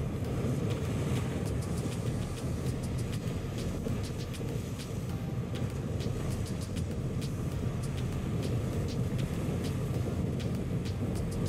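A motorboat engine roars steadily.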